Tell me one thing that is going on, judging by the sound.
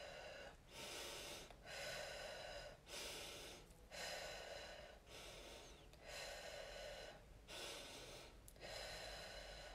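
A middle-aged woman talks with animation close to a phone microphone.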